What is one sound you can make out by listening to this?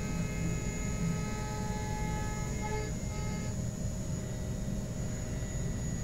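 Coolant sprays and splashes against metal.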